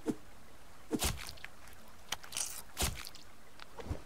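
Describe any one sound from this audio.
A hatchet chops into an animal carcass with dull thuds.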